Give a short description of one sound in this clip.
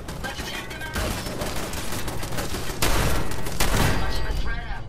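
A rifle fires in loud bursts.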